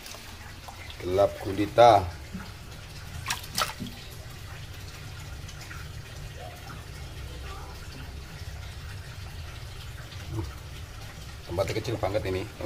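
Water splashes as a net sweeps through it.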